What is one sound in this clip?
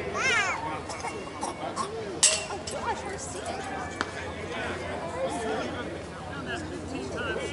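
Several men and women talk and call out across an open outdoor field.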